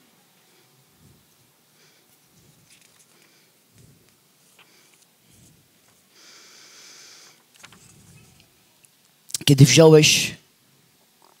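A woman speaks through a microphone, starting quietly and then saying a short, loud phrase.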